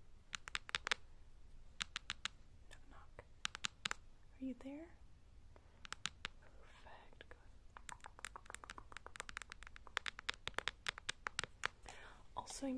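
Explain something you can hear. Fingernails tap and click sharply close to a microphone.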